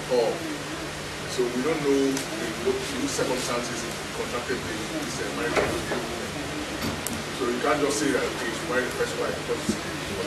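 A man speaks with animation to a crowd.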